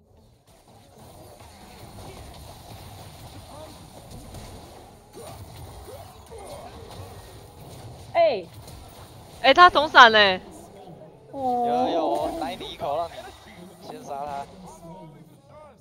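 Game effects clash and whoosh.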